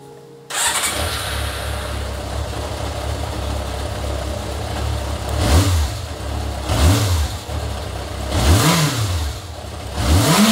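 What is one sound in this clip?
An inline-four motorcycle engine idles.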